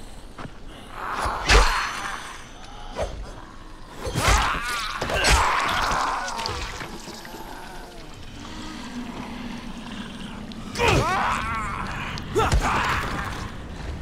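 A creature snarls and shrieks in pain.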